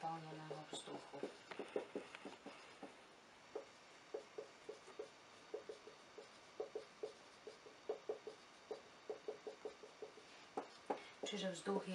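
A marker squeaks and taps on a whiteboard in short strokes.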